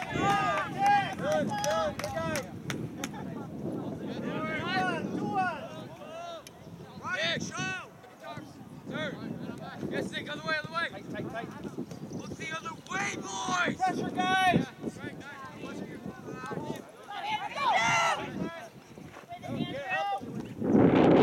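Young girls shout and call out to each other across an open field outdoors.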